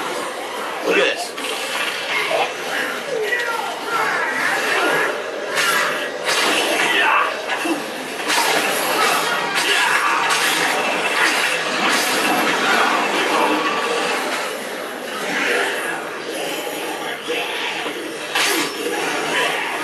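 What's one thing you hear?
Blades slash and squelch into flesh again and again.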